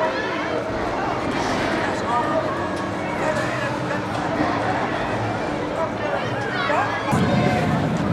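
Riders scream on a swinging ride.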